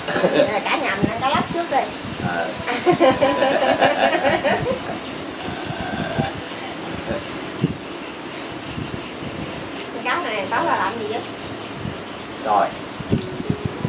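A woman talks and laughs nearby.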